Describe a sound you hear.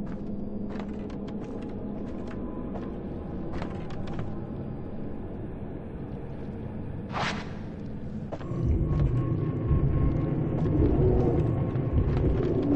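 Footsteps thud slowly on a creaking wooden floor.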